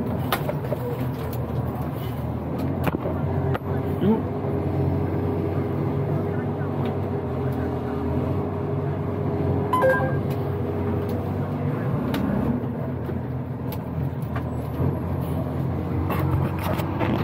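A truck's cab rattles and creaks as it moves over a rough road.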